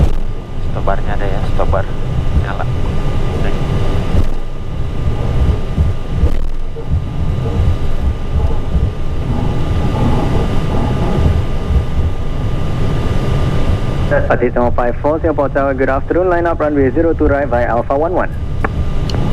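An aircraft engine hums low and steady.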